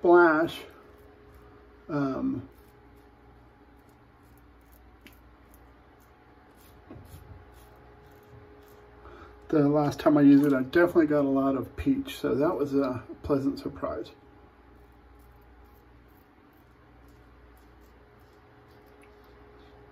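A razor scrapes softly across stubble.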